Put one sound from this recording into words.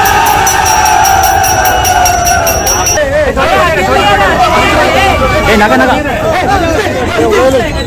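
A crowd of men cheers and shouts with excitement.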